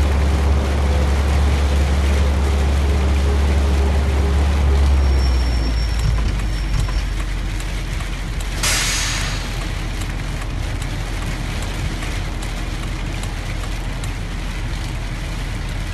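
A bus engine drones steadily and then drops to a low idle.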